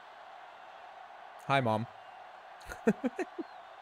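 A stadium crowd cheers and roars.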